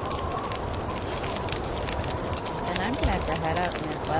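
A fire crackles softly close by.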